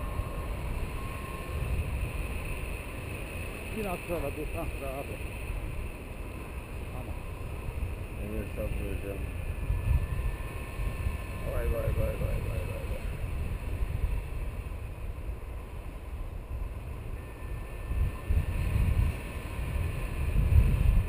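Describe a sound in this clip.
Wind buffets the microphone in strong gusts outdoors.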